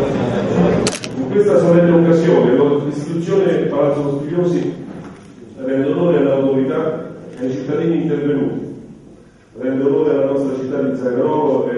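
A middle-aged man speaks calmly through a microphone in an echoing hall.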